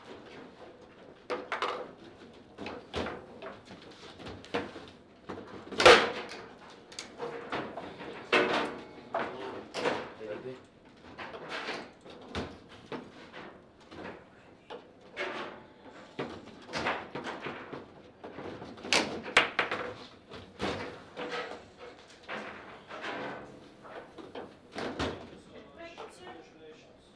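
Table football rods clatter as they are spun and slid.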